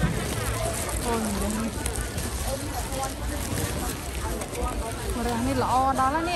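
A plastic bag rustles as vegetables are put in.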